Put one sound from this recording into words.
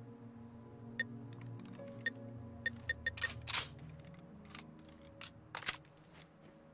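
Short electronic menu clicks and chimes sound in quick succession.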